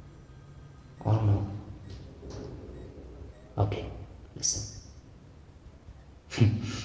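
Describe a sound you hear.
A young man speaks quietly into a phone, close by.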